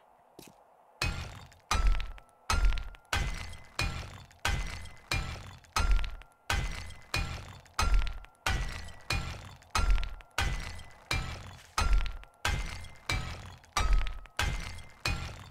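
A hammer strikes wood in a steady rhythm.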